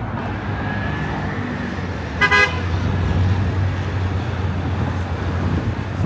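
A motor scooter drives past.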